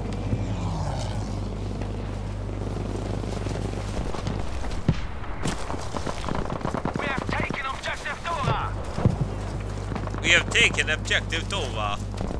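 Rifle shots crack in short bursts.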